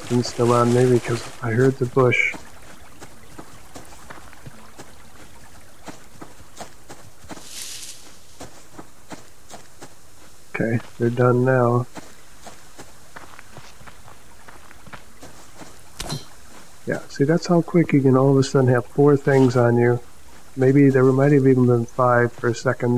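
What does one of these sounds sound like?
Footsteps crunch and rustle through grass.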